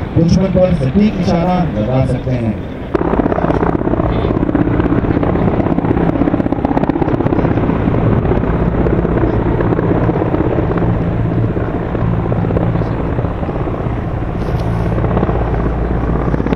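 A helicopter's rotor thumps and its engine roars nearby.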